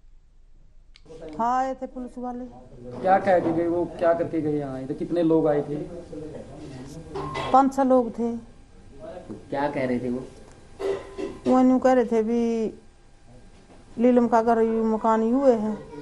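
A middle-aged woman speaks close by, in a distressed, wavering voice.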